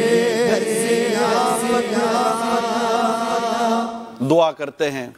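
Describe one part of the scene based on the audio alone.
A man chants melodiously into a microphone.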